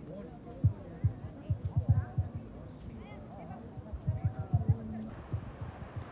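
Voices of a crowd chatter in the background outdoors.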